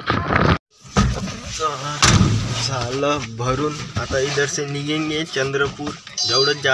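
A young man speaks close up inside a vehicle.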